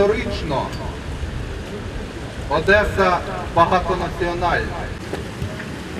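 Men sing or chant together outdoors.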